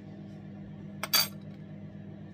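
A spoon clinks down onto a wooden table.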